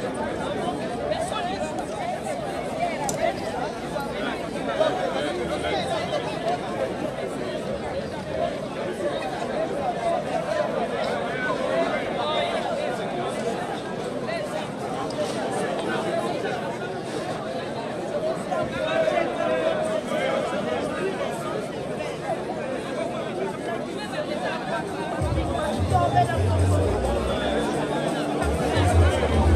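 A large crowd of men and women chatters and sings outdoors.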